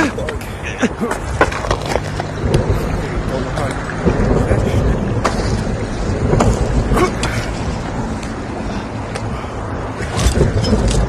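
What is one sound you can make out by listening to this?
Hands scrape and grip on rock.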